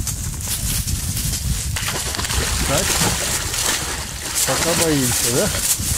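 A dog splashes through shallow water.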